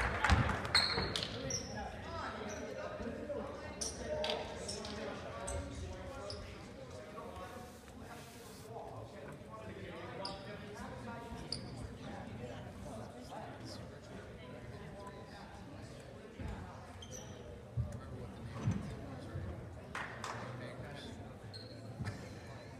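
Spectators chatter in an echoing gym.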